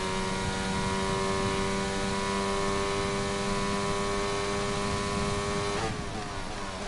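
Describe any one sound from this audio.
A racing car engine screams at a steady high pitch.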